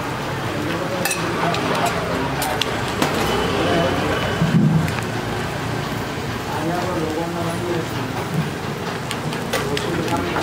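Metal utensils clink and scrape against a griddle.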